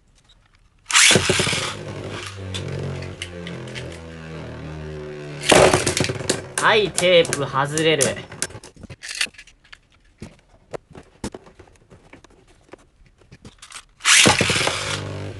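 A spinning top is launched into a plastic arena with a sharp ripping whir.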